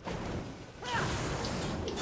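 Flames roar in a burst.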